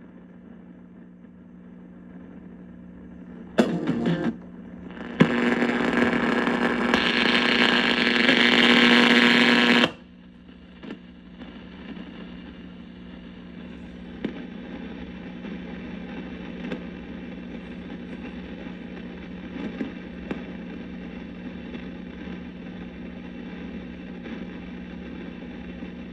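An old radio hums and hisses steadily.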